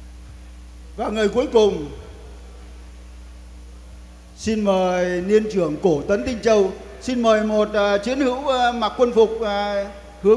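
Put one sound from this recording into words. A man speaks with animation into a microphone, heard over loudspeakers in a large hall.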